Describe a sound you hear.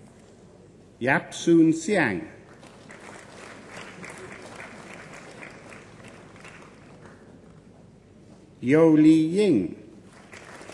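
A man reads out over a loudspeaker in a large hall.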